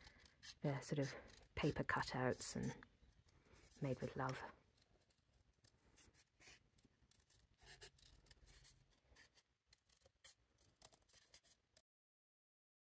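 Scissors snip through paper with small, quick clicks.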